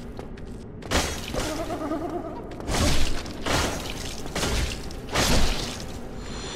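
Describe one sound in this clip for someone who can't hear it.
Heavy weapon blows strike with loud thuds and clangs.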